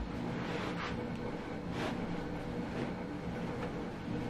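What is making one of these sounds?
Fabric rustles as it is tucked into a wicker basket.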